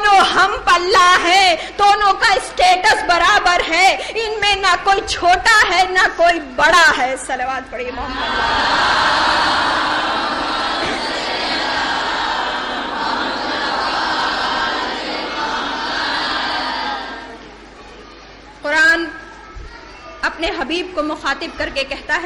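A woman speaks with emotion into a microphone.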